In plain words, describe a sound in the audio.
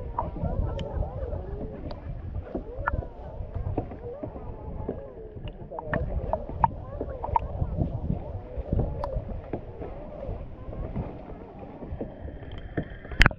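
Water laps and gurgles close by, half underwater.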